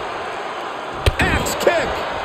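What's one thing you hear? A body thuds heavily onto a wrestling mat.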